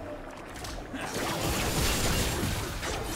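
Magic spell effects burst and crackle in a fight.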